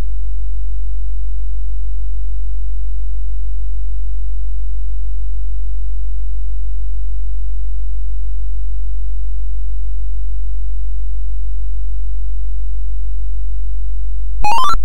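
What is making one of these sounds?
An old computer game drones with a low, steady buzz.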